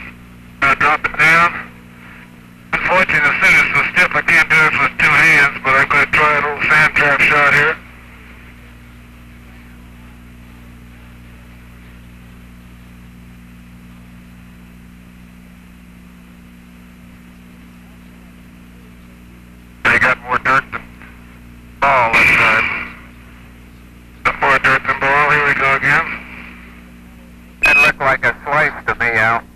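A man talks calmly over a narrow, crackly radio link.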